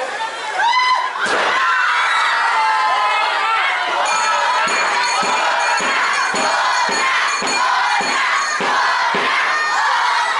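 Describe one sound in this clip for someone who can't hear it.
Bodies thud heavily onto a wrestling ring's mat.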